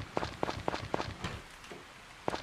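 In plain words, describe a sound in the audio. Light footsteps patter quickly.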